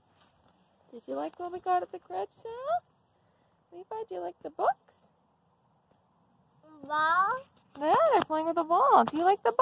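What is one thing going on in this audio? A small child babbles and chatters with animation close by.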